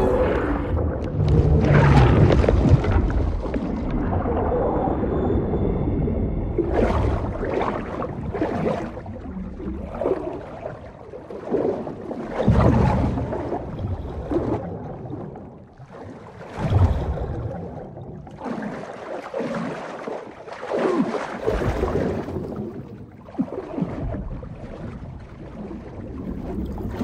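Bubbles gurgle and rise underwater.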